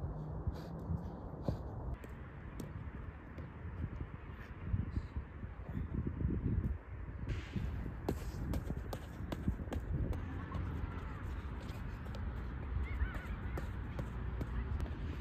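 A football is kicked with dull thumps on artificial grass.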